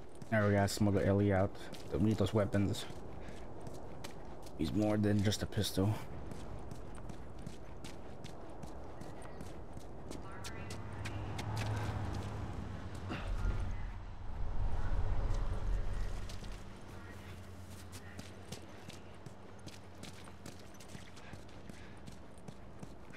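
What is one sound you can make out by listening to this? Footsteps run quickly over pavement.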